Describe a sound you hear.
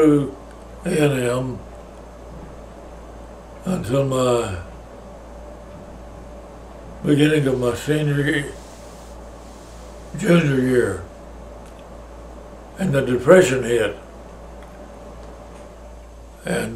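An elderly man speaks slowly and calmly close by, in short phrases with long pauses.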